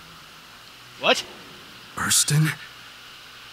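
A man exclaims in surprise.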